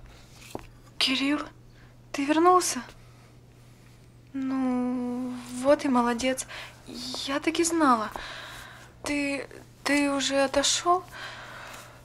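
A young woman speaks close by, pleading with emotion.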